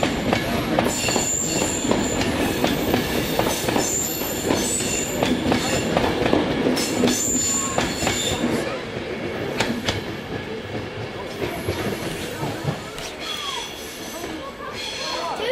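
An electric high-speed train rushes past at speed, then fades into the distance.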